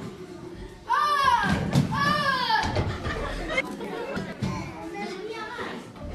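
A young girl speaks and exclaims loudly.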